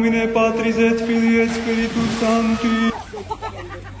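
Water splashes as a man slides into a pool.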